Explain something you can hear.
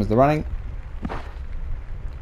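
A cricket bat knocks a ball.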